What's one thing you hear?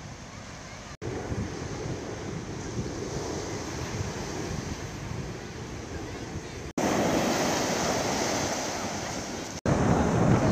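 Waves crash and wash onto the shore.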